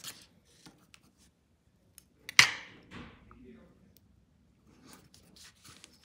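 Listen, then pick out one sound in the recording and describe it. A scraper scrapes across a metal plate.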